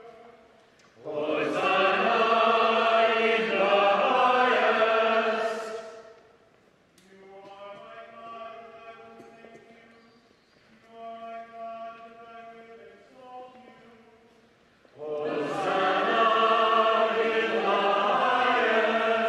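A congregation sings loudly together in a large echoing church.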